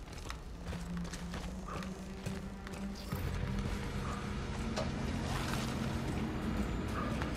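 Heavy footsteps crunch slowly on rocky ground.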